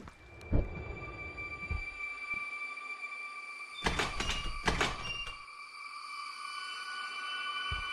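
Footsteps creep slowly and softly.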